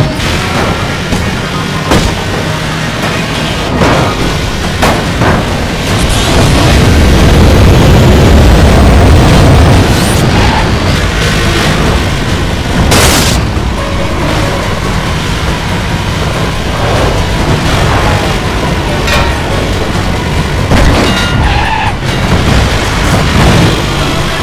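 Tyres screech around bends.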